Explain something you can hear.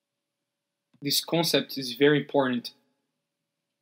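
A man speaks calmly and clearly close to a microphone.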